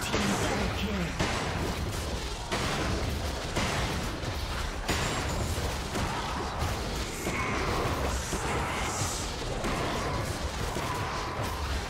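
Blows and magic blasts land in quick bursts.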